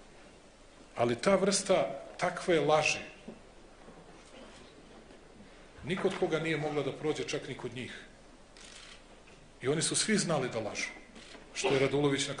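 A man speaks calmly into a microphone in a large hall, with pauses between phrases.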